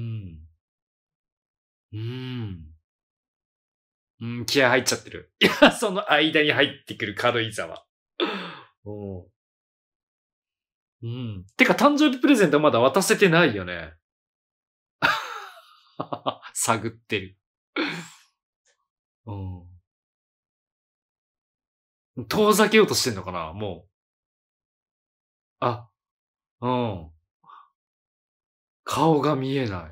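A man talks casually into a close microphone, with pauses.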